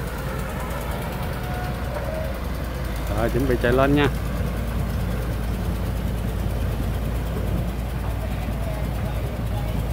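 A diesel engine rumbles steadily nearby.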